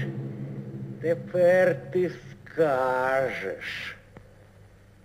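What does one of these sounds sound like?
A man cries out in a long, wavering voice.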